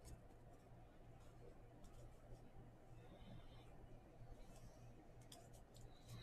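Trading cards rustle softly as hands sort through them.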